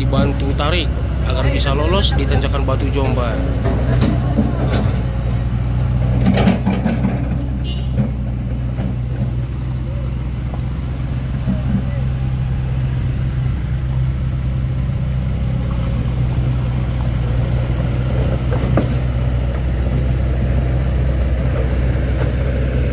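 A truck engine rumbles steadily close by.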